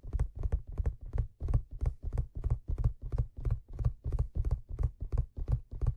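Fingertips tap and scratch quickly and steadily on leather close to a microphone.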